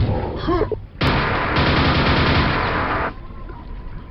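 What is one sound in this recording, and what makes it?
A loud rushing burst of video game noise plays, then stops suddenly.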